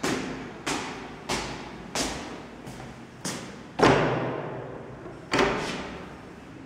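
Footsteps climb stairs, echoing in a stairwell.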